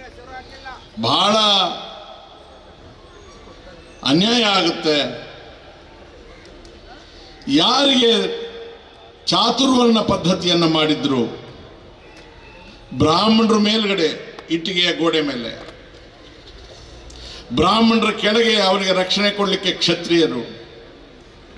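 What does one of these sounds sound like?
An older man speaks forcefully into a microphone over loudspeakers, in loud bursts with pauses between.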